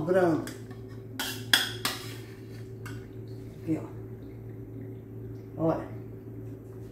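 A metal spoon scrapes and clinks against a metal bowl.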